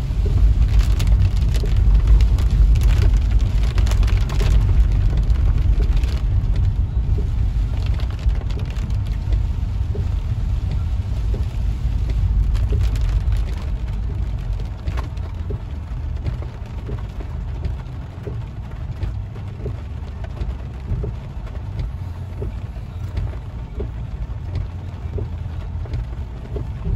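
Wind gusts hard outdoors, rumbling against the car.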